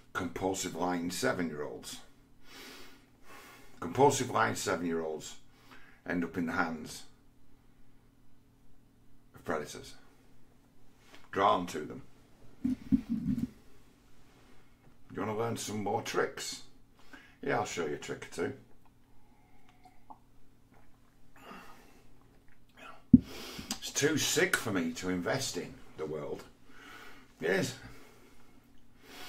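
A middle-aged man talks calmly and casually, close to the microphone, with pauses.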